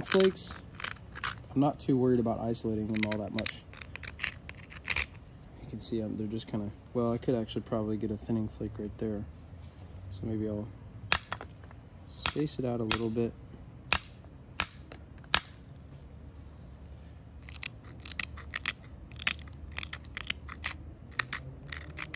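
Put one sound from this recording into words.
Small stone flakes snap off with sharp clicks.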